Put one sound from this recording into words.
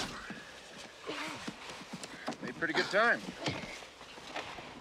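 A man groans and speaks in a daze close by.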